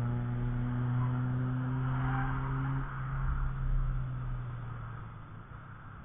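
A car engine roars past at speed and fades into the distance.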